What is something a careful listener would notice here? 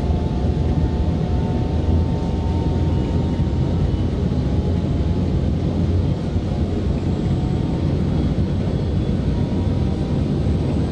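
A train rumbles steadily along the rails at speed.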